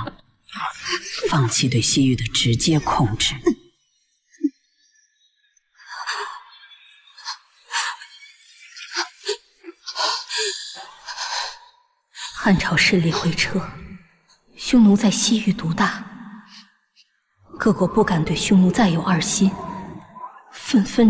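A middle-aged man speaks weakly and hoarsely, close by.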